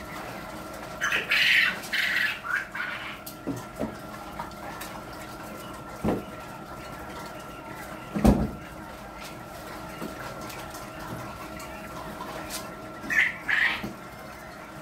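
Chickens squawk nearby.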